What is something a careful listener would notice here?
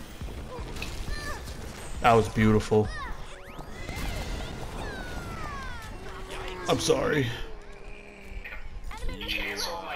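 Magic blasts whoosh and crackle in a game fight.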